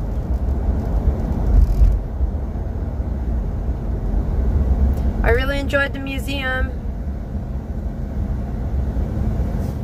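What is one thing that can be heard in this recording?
A car's engine and tyres rumble steadily on a highway.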